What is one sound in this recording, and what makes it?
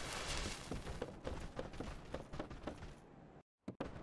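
Footsteps patter quickly on a hard roof.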